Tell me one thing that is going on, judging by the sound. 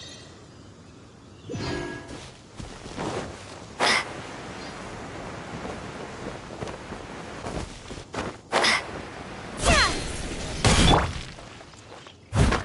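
Footsteps patter on grass.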